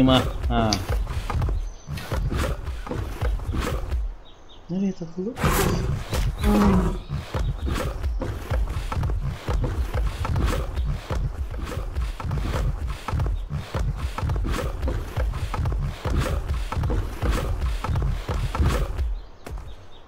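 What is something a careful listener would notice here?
A large animal's heavy footsteps thud in a steady rhythm.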